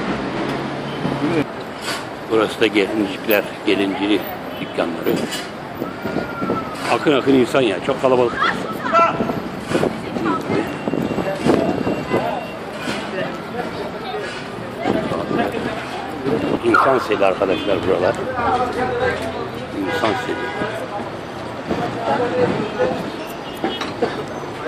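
Traffic hums along a busy street outdoors.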